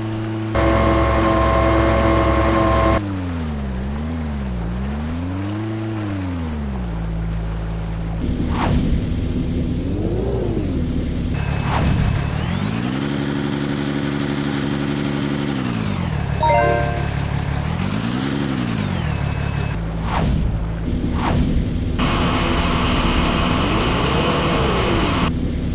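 A heavy truck engine rumbles, revving up and down.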